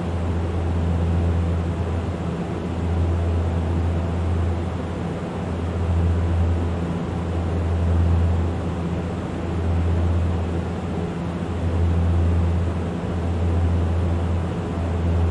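A propeller engine drones steadily with a low, slowly pulsing hum.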